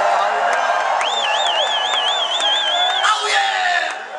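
A man sings a long, high, wavering note through loudspeakers.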